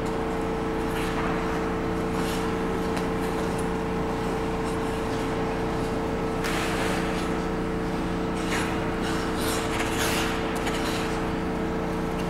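Ice skate blades scrape and hiss across the ice.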